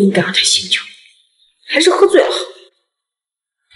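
A young woman speaks quietly and sadly.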